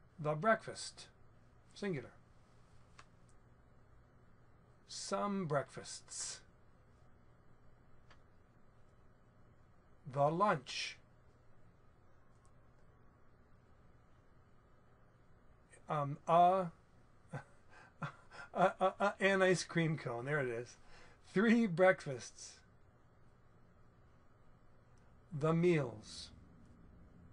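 A middle-aged man speaks calmly into a close microphone, in short phrases with pauses.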